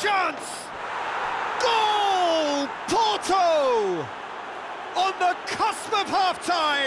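A large crowd roars and cheers.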